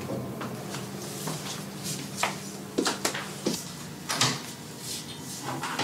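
High heels click on a hard floor as a woman walks away.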